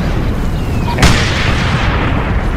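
An explosion booms heavily.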